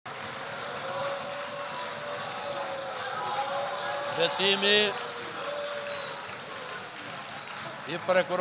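A crowd of men and women shouts and clamours in an echoing hall.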